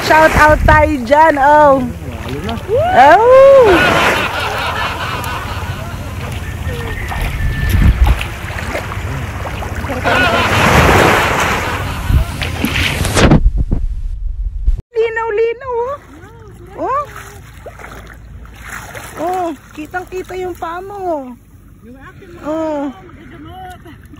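A woman talks and laughs close to a phone microphone, outdoors.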